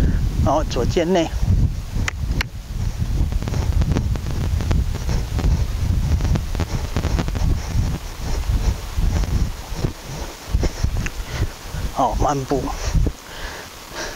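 A horse trots on soft ground, its hoofbeats thudding in a steady rhythm.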